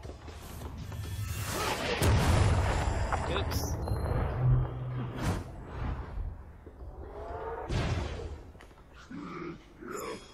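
Magic blasts crackle and whoosh in quick bursts.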